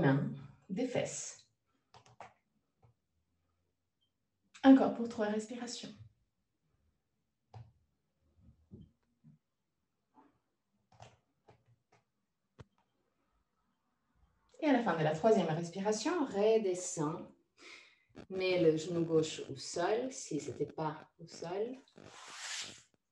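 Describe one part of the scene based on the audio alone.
A young woman speaks calmly and slowly, close by, with long pauses.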